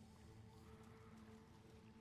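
Footsteps scuff on a stone floor.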